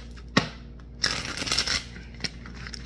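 Playing cards riffle as they are shuffled.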